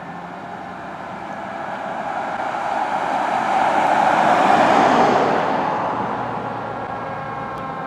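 A car passes close by on the road.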